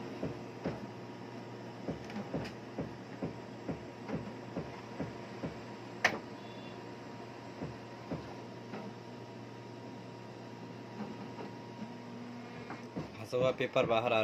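A printer's mechanism clicks and knocks at a steady pace.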